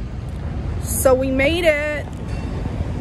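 A young woman speaks close to the microphone in a drawn-out, sing-song voice.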